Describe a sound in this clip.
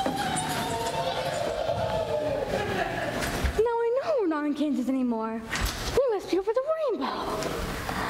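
A young girl sings on a stage in a large echoing hall.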